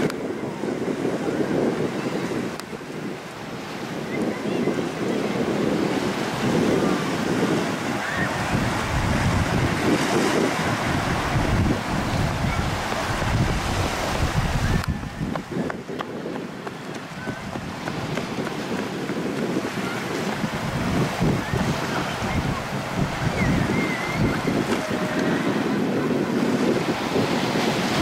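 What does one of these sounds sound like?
Small waves break and wash onto a sandy shore in the distance.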